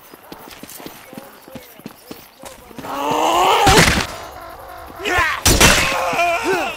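A sword swings and strikes with sharp metallic hits.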